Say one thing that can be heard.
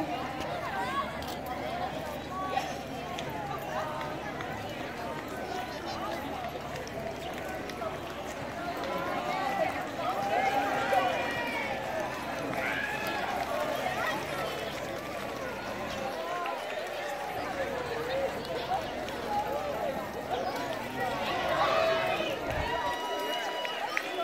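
A crowd of people chatter outdoors throughout.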